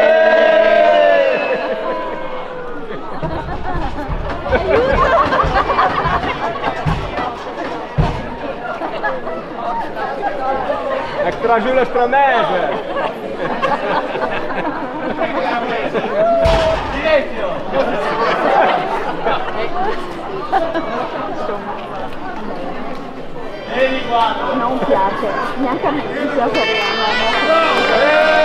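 A man sings into a microphone, heard through a loudspeaker.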